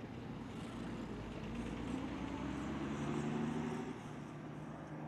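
A propeller plane's engine rises and falls in pitch as it passes by.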